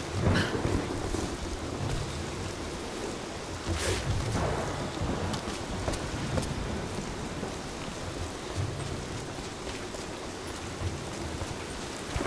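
Footsteps scrape on stone and gravel.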